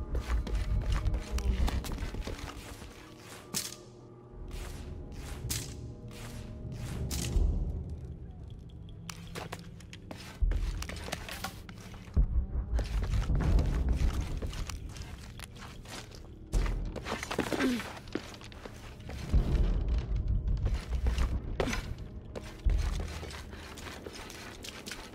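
Footsteps tread on stone steps.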